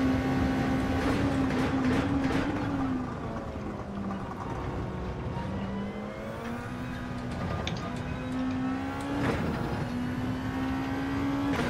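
A racing car engine roars, dropping in pitch as it slows and then revving up again.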